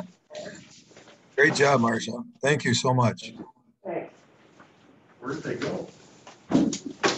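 A man speaks calmly over a microphone in a room with a slight echo.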